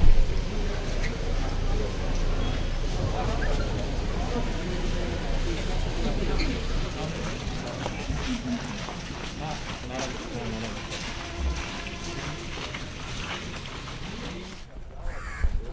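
A crowd of men and women chatters and murmurs outdoors.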